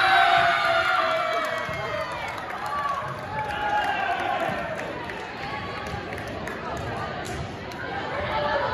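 Young women cheer and shout excitedly in a large echoing gym.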